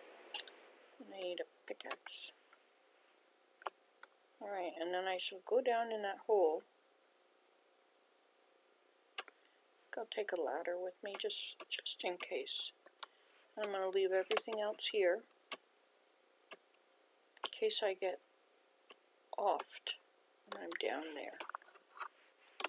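An elderly woman talks calmly into a microphone.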